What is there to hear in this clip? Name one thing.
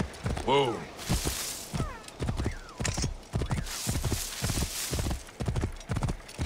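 Tall grass swishes and rustles against a running horse.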